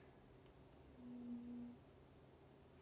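A young woman hums a short steady note close by.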